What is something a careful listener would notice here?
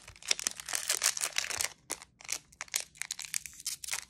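A foil wrapper tears open.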